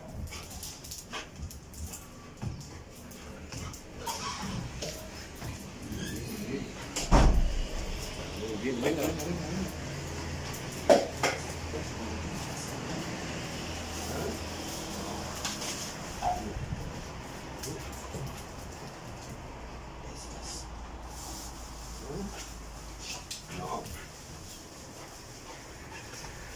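A dog's paws click and scrabble on a hard floor.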